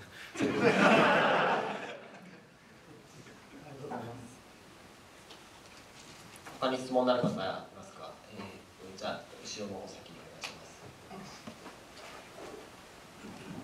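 A man speaks into a microphone over loudspeakers in a large room, pausing now and then.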